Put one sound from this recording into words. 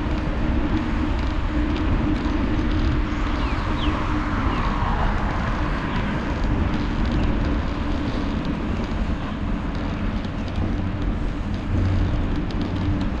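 Wind rushes loudly past a microphone while riding outdoors.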